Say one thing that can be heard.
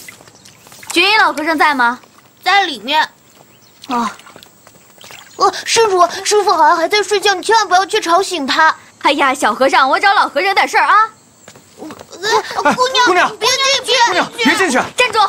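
A young boy speaks urgently, close by.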